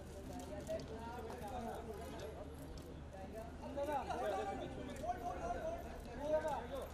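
Several adult men and women chatter and call out nearby.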